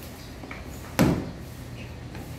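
A wooden door opens with a knock.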